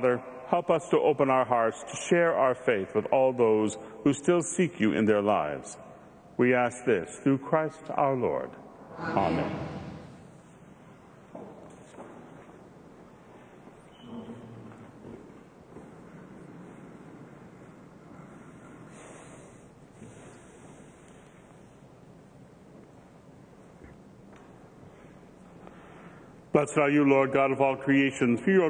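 A man speaks slowly and solemnly into a microphone in a large echoing space.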